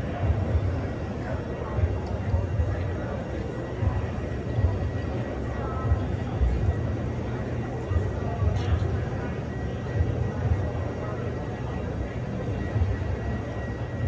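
Many people chatter at a distance in a large, busy hall.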